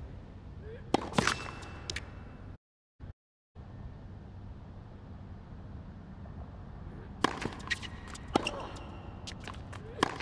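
A tennis racket strikes a ball.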